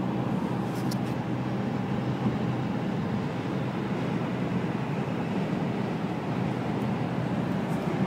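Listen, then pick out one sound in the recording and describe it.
A coach's engine drones close by as it passes alongside.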